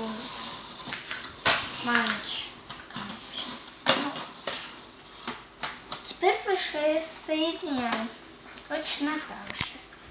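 Plastic toy pieces clack and rattle on a hard tabletop.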